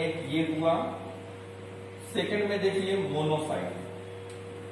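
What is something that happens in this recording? A man lectures calmly nearby.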